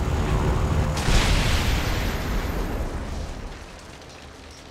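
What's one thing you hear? A plane crashes into the ground with an explosion.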